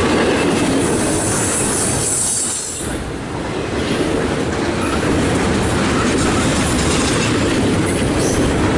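A double-stack container freight train rumbles past close by.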